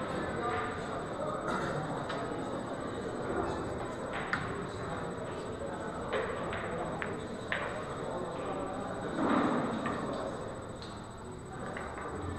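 Pool balls clack together as they are racked on a table.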